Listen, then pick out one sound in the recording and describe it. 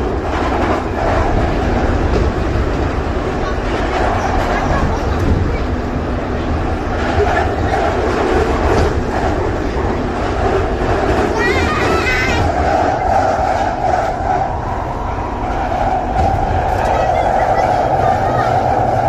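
A train rumbles and rattles steadily along its tracks.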